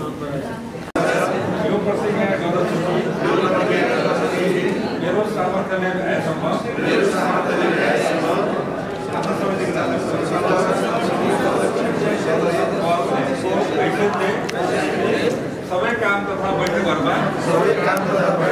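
A man reads aloud steadily through a microphone.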